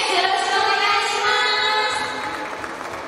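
Young women sing through microphones.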